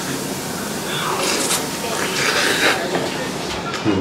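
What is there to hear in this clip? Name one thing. A man chews food noisily.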